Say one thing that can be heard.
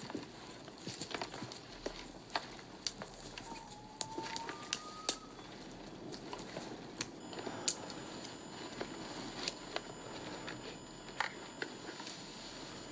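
Footsteps crunch and rustle through dry brush.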